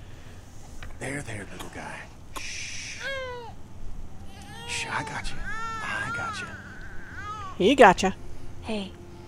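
A baby cries and whimpers.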